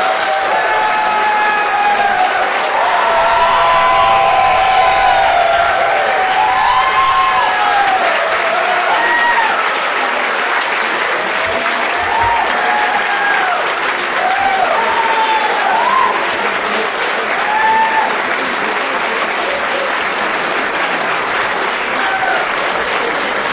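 A large crowd claps and applauds steadily.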